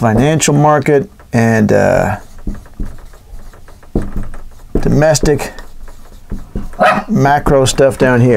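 A marker squeaks on a whiteboard.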